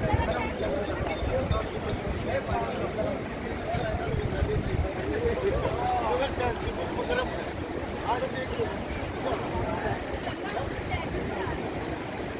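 Water splashes around people bathing in the river.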